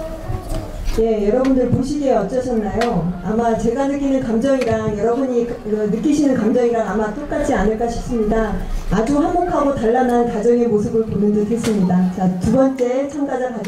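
A woman announces over a loudspeaker in a large echoing hall.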